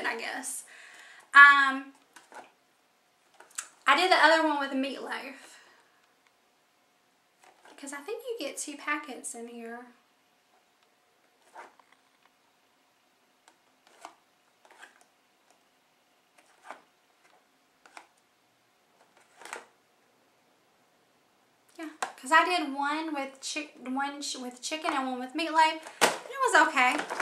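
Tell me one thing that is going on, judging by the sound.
A young woman talks calmly and close by, with pauses.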